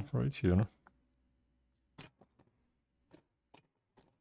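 Small plastic parts click softly as a cable is fitted into a connector.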